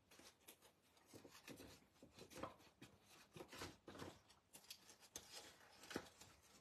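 Paper rustles and crinkles close by as hands fold it.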